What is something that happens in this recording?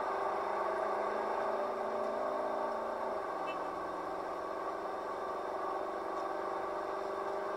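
A car engine hums steadily as the car drives fast, dropping in pitch briefly after a few seconds.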